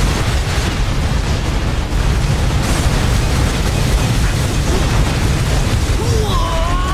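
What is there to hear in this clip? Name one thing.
Explosions boom and rumble in a video game.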